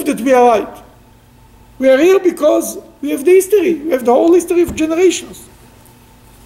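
An elderly man speaks calmly and clearly into a nearby microphone.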